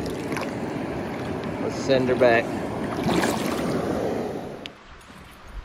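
Water splashes and churns close by.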